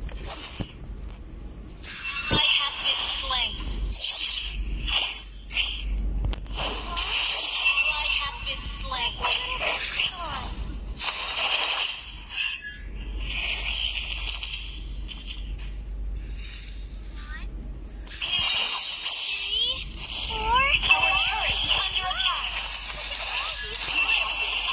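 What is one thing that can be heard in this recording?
Game sound effects of spells and hits crackle and whoosh.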